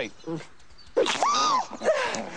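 A young man shouts in surprise.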